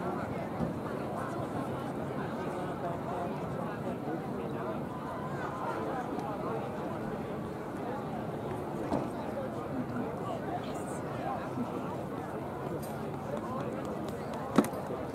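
A crowd of people chatter outdoors at a distance.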